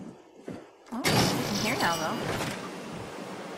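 A heavy metal door slides open with a loud mechanical rush.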